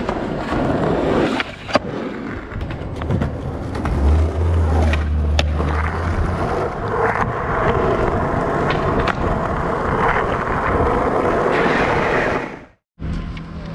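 Skateboard wheels clack over cracks in the road.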